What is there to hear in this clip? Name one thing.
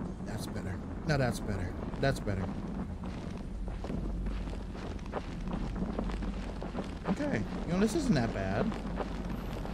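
A young man talks quietly and close to a microphone.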